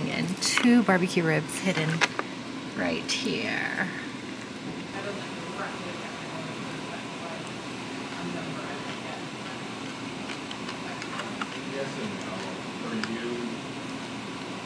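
A fork scrapes and taps against a plastic container.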